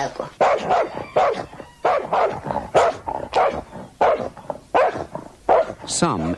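A dog barks fiercely and rapidly up close.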